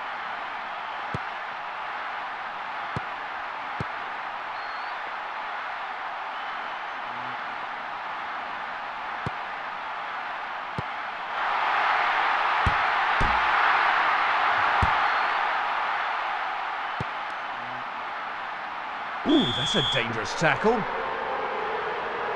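A stadium crowd roars steadily, swelling loudly and then fading.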